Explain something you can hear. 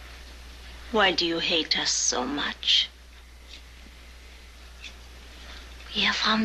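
A woman speaks tensely close by.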